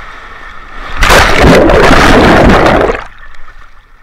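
A rider plunges underwater into a pool with a rushing splash.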